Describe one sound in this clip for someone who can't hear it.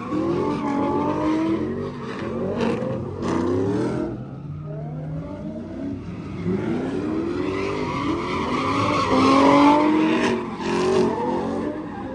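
Car engines rev hard, rising and falling in pitch.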